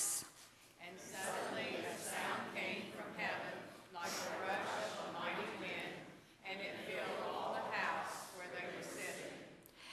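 An elderly woman reads aloud calmly through a microphone.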